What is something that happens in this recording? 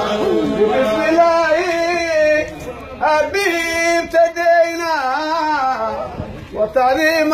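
A man sings a loud lead line close by.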